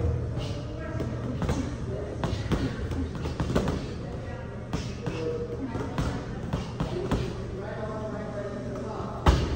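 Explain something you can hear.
Fists and shins thud against heavy punching bags in a hard, echoing room.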